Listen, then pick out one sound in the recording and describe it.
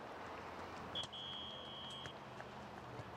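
A referee's whistle blows one long, shrill blast outdoors.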